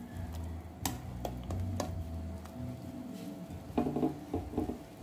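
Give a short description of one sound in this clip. Soup bubbles and simmers in a pot.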